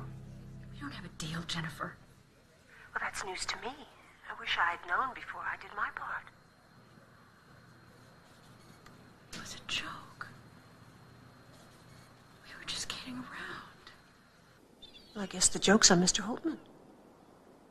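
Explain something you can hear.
A woman speaks calmly into a phone, pausing often between short phrases.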